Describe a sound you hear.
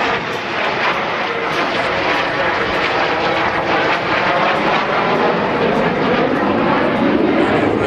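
A jet engine roars loudly overhead as a jet plane flies past.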